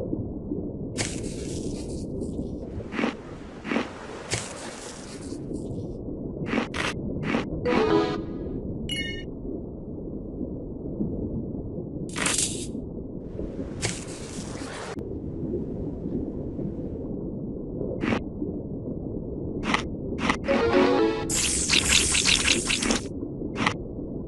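A shark chomps on prey in short, sharp bites.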